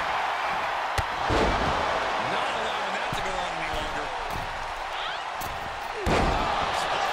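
A heavy body slams onto the ring mat with a loud thud.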